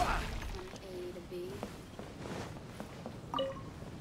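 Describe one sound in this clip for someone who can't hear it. Footsteps tap on wooden boards.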